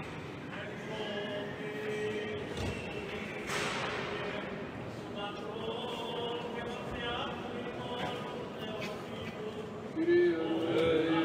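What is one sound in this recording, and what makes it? Young boys chant together, echoing through a large reverberant hall.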